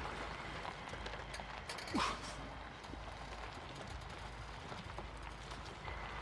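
A car creaks as it is pushed along.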